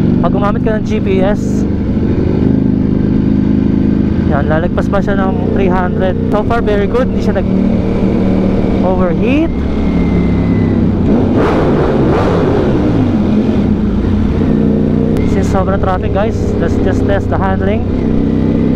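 A motorcycle engine revs up sharply in quick bursts through the gears.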